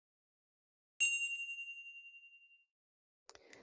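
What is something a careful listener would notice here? A small bell chimes once and rings out.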